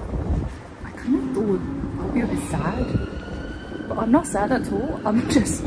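A young woman talks cheerfully and close by, outdoors.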